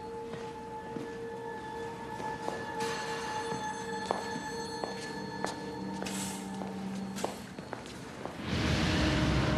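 Footsteps tap along a hard floor.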